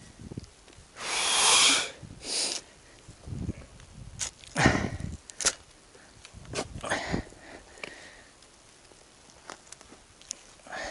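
A shovel scrapes and digs into dry soil.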